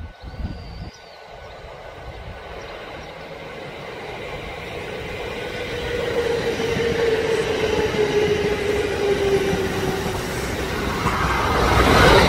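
A train's wheels rumble along the rails as it approaches and passes.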